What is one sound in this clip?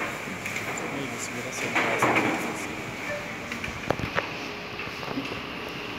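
A man speaks quietly through loudspeakers in a large echoing hall.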